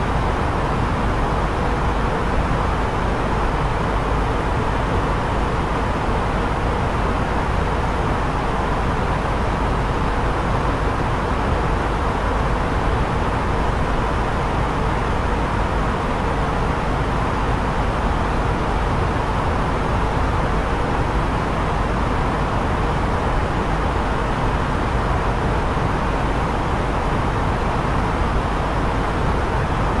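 Jet engines and rushing air roar steadily in flight.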